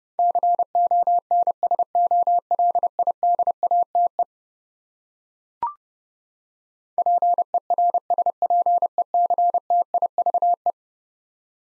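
Morse code beeps in quick, even bursts of short and long tones.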